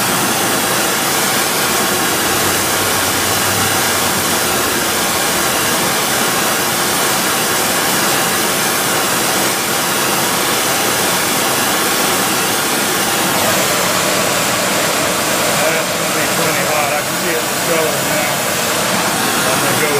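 A gas torch roars with a steady hiss.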